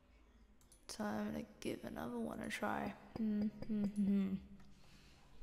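A young woman talks calmly and close into a microphone.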